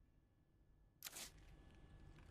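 A metal piece clunks into a slot.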